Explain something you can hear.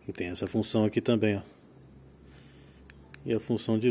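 A small flashlight switch clicks.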